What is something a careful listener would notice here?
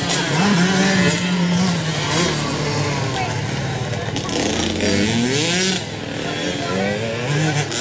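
An engine revs up sharply as a dirt bike speeds past close by.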